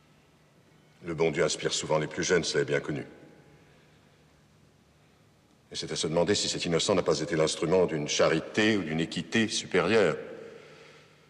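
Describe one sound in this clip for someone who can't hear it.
An elderly man speaks slowly and solemnly, close by.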